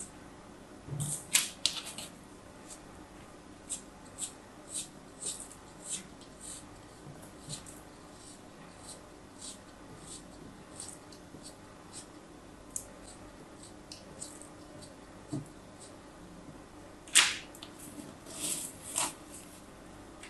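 Sand crumbles and patters as chunks break apart.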